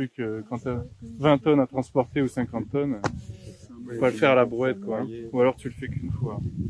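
A man speaks with animation close by, outdoors.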